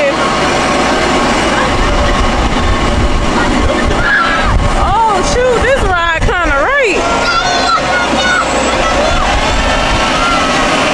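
A carnival ride whirs and rattles as it spins.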